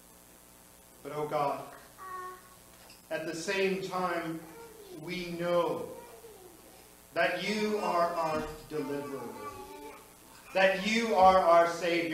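A middle-aged man speaks slowly and earnestly through a microphone in a room with a slight echo.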